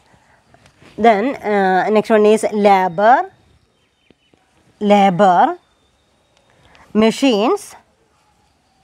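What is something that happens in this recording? A woman speaks clearly and steadily in short phrases, close by.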